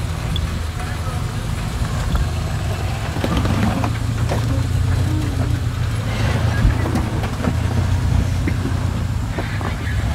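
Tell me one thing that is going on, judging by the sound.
Tyres crunch and scrape over loose rocks.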